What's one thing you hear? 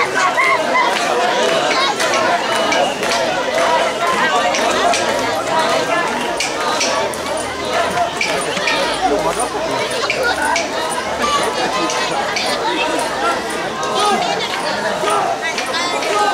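Wooden poles of a shrine float knock and clatter as bearers carry it.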